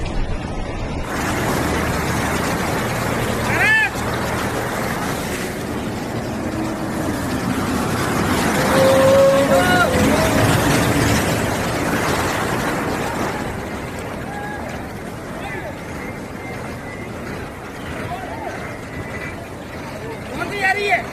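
Floodwater rushes and swirls steadily.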